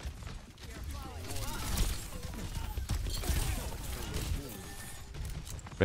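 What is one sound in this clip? Gunshots fire in rapid bursts with loud impacts.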